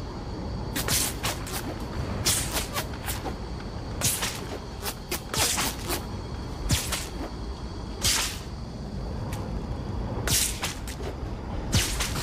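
A grappling line whooshes and zips as a game character swings through the air.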